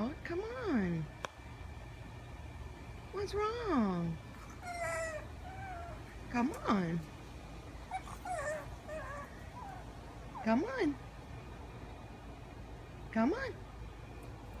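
A small dog whines in short rising and falling cries.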